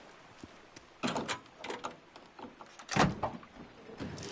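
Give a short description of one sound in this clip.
Metal clanks as a car hood is lifted open.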